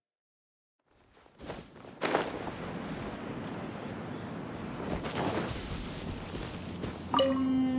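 Footsteps run through rustling dry grass.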